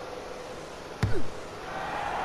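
A ball is kicked with a sharp thud.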